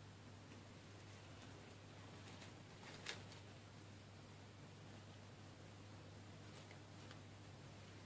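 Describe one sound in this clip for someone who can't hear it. Paper rustles and crinkles softly between fingers.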